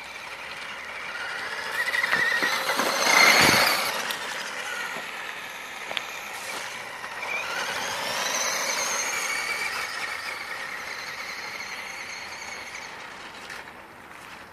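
A small electric motor whines, rising and falling in pitch as a toy car speeds about.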